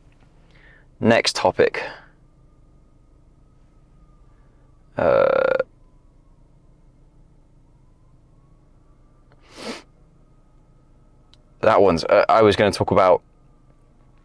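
A young man speaks in short bursts close by.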